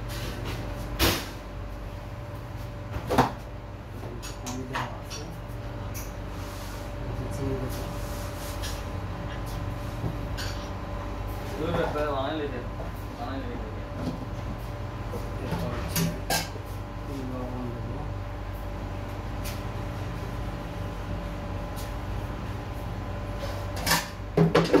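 Plastic containers knock and clatter as hands handle them close by.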